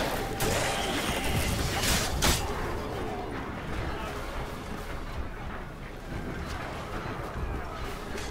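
Footsteps run over stone ground.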